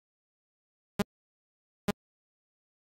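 Two short electronic clicks sound.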